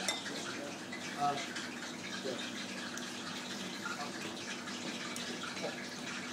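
A whisk clinks against a bowl.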